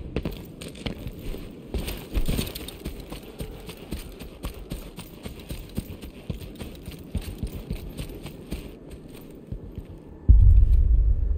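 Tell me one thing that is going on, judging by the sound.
Footsteps thud quickly across dry grass.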